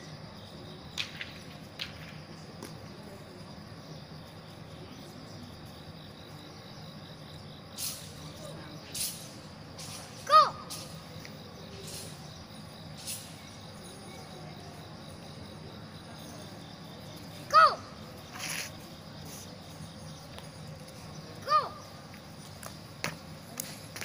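Shoes scuff and tap on concrete outdoors.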